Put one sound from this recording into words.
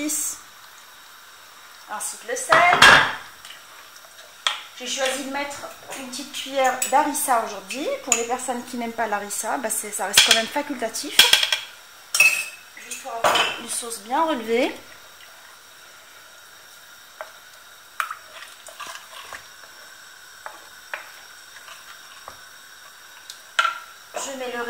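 A wooden spoon scrapes and stirs a thick sauce in a clay pot.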